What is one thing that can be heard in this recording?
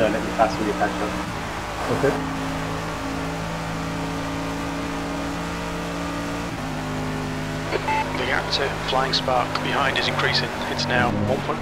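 A racing car engine drones loudly at high revs, shifting pitch with gear changes.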